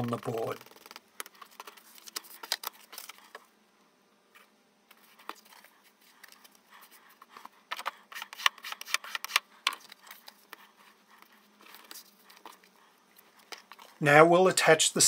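Sheets of paper and card rustle and tap on a tabletop.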